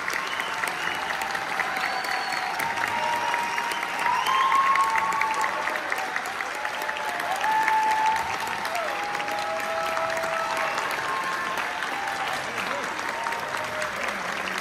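Brass and wind instruments play loose, scattered notes in a large echoing hall.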